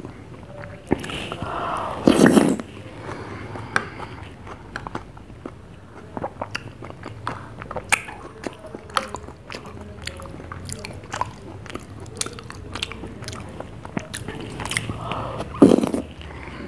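A child slurps and chews a mouthful close by.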